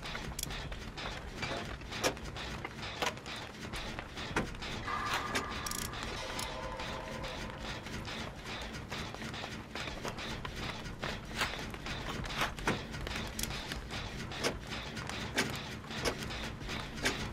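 A generator rattles and clanks as it is repaired.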